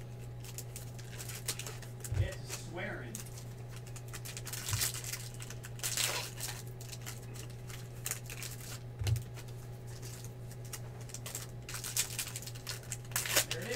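Trading cards rustle and slide against each other while being shuffled.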